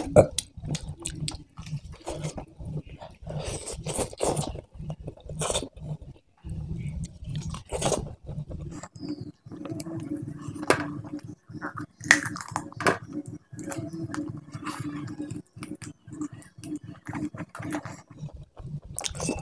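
A man chews food noisily and close up.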